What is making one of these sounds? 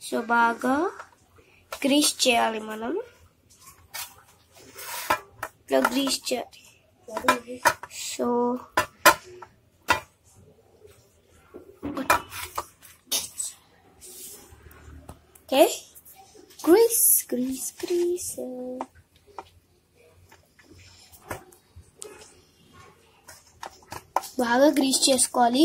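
A spoon scrapes and taps against a plastic container.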